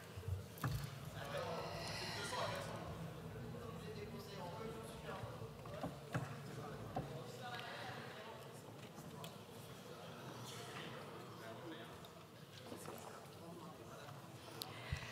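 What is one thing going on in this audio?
A woman speaks calmly into a microphone in a large echoing hall.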